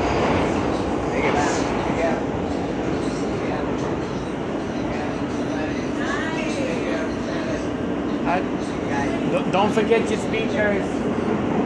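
Men and women talk nearby in a crowded carriage.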